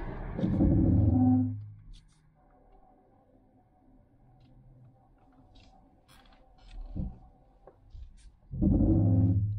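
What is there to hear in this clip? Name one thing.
A man speaks calmly, close by inside a car.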